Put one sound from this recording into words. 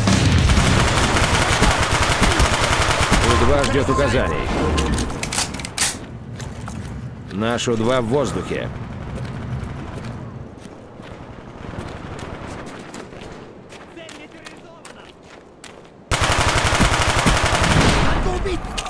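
A video-game gun fires in rapid bursts.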